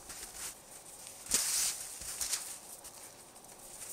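A man drops down to sit in the snow with a soft rustle.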